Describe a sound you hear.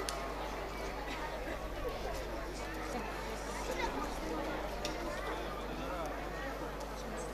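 A live band plays folk music through loudspeakers.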